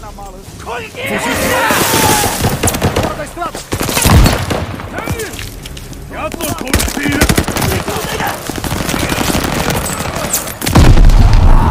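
Gunfire and explosions crack and boom loudly.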